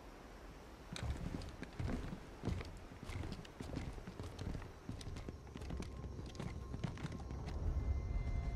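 Heavy armoured footsteps thud and clank on the ground.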